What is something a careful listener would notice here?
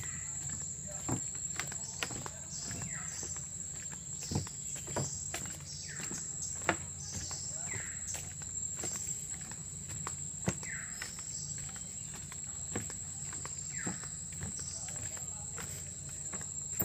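Footsteps thud on wooden boards at a steady walking pace.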